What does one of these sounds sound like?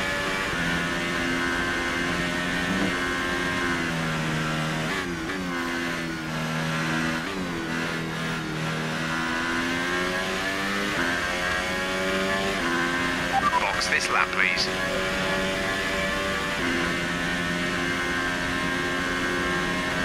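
A racing car engine screams at high revs, dropping in pitch as it brakes for corners and rising again as it speeds up.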